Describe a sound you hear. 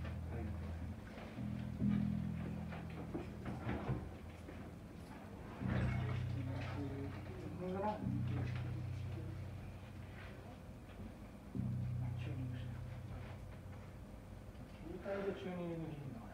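A bass guitar plays low, plucked notes.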